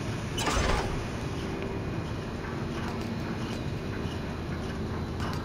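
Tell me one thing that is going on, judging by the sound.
Footsteps run across a metal walkway.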